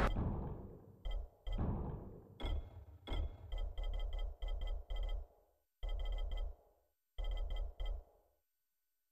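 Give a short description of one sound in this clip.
Short soft clicks tick in quick succession.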